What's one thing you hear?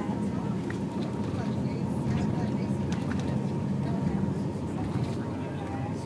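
A bus engine rumbles steadily.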